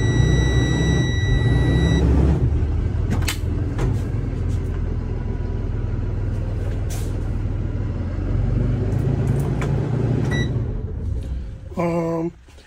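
An engine idles with a low, steady rumble.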